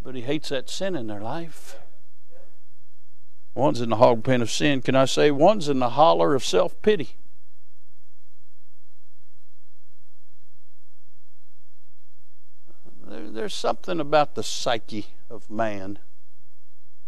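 A man speaks calmly through a microphone, with long pauses.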